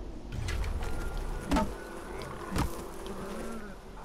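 A beehive falls from a branch with a dull thud.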